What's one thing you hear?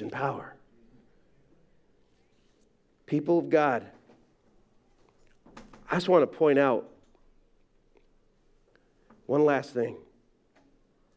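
A middle-aged man speaks slowly in short phrases with long pauses, heard through a microphone in a large room.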